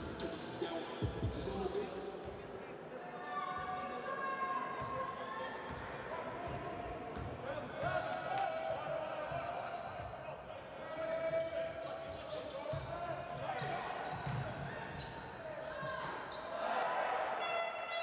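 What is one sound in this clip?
A large indoor crowd murmurs and cheers, echoing in a big hall.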